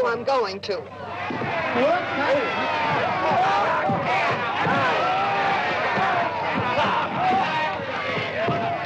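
A crowd of men and women shouts and cheers in an open space.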